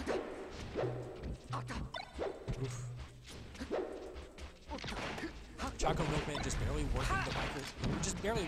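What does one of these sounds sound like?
Fighting game effects crack and zap in quick bursts.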